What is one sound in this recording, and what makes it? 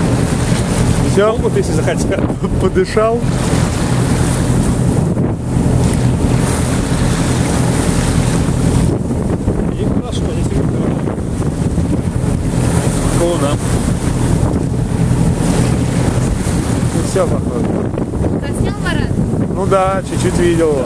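Wind blows steadily across open water outdoors.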